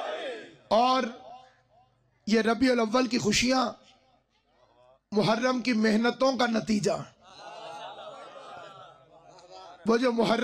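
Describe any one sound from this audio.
A man speaks with passion into a microphone, in bursts with pauses.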